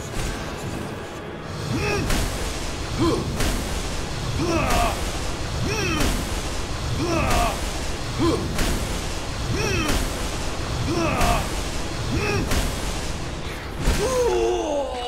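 Bursts of magic boom and crackle again and again.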